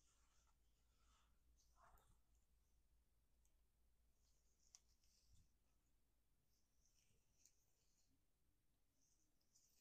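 A comb drags through hair, close to the microphone.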